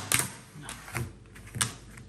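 A plastic container rustles and rattles in someone's hands.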